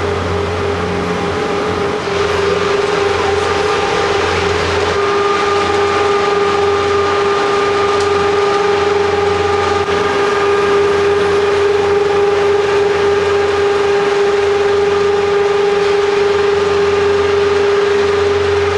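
Lift machinery hums and whines steadily in a large echoing hall.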